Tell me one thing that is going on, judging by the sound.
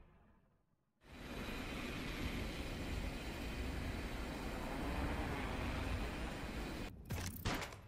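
Wind rushes steadily during a freefall.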